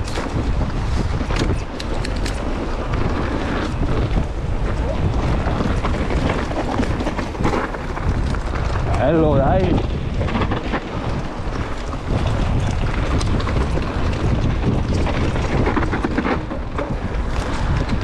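A bike's frame and chain rattle over bumps.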